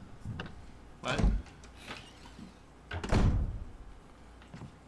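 A heavy wooden door opens with a low rumble.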